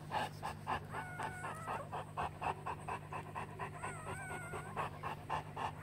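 A newborn puppy gives faint high squeaks.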